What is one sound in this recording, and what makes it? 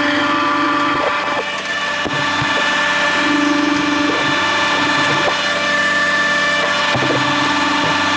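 Metal parts of a machine clank and knock.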